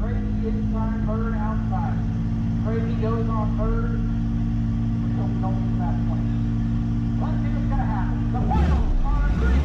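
A car engine idles with a low steady rumble.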